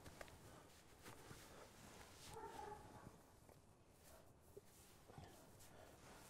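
Cloth gauze rustles as it is wrapped around a leg.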